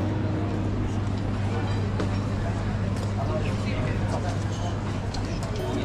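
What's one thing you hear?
Footsteps scuff on cobblestones.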